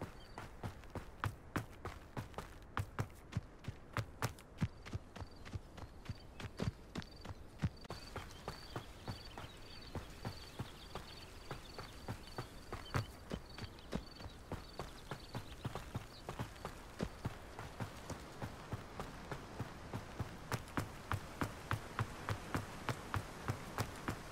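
Quick footsteps run over grass, dirt and stone.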